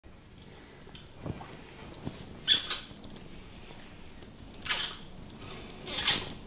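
Two men kiss with soft, wet smacking sounds.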